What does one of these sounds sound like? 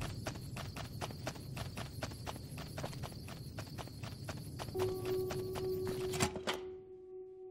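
Footsteps clank quickly on a metal walkway.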